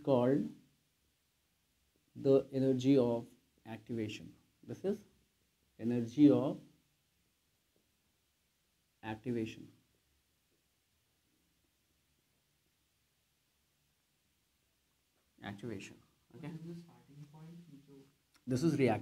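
A man speaks calmly in short phrases, close by, with pauses between them.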